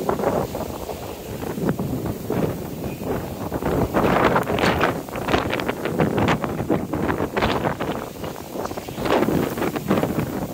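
Wind gusts hard across the microphone outdoors.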